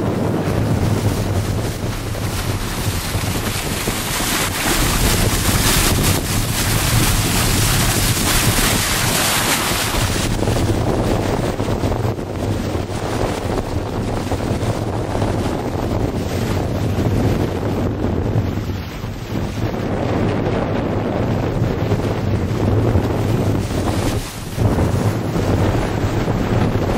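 Wind blows hard and buffets outdoors.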